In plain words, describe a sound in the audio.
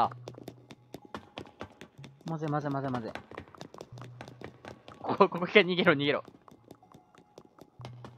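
Footsteps tap quickly up metal stairs.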